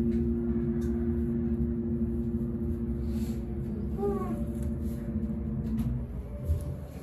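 An elevator motor hums steadily as the car moves.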